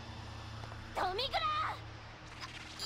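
A young woman shouts in alarm.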